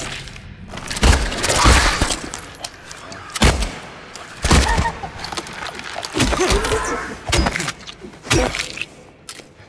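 A pistol fires several loud shots in a row.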